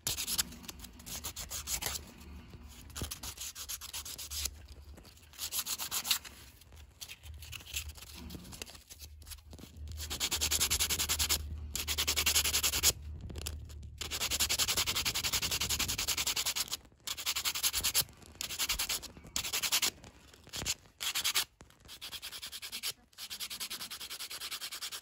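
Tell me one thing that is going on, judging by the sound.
A knife blade scrapes and shaves a small piece of wood in quick, repeated strokes.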